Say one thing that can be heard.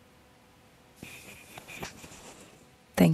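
Clothing rustles close to a microphone.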